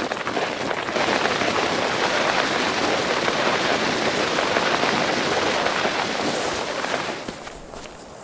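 A body scrapes and slides down a rough, grassy slope.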